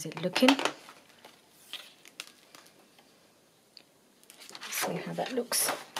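A sheet of plastic rustles as it is peeled off paper.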